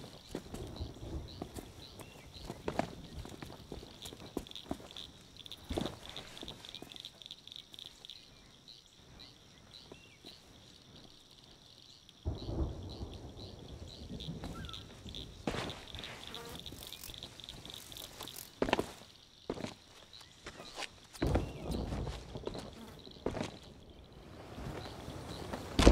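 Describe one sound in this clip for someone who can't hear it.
Footsteps patter quickly over sand and grass.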